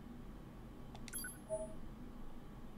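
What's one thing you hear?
A short electronic chime rings when a menu choice is confirmed.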